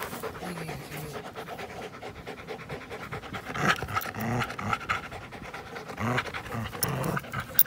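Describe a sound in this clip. A dog snuffles and pants close by.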